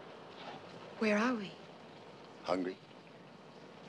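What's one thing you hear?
A woman speaks a few quiet words nearby.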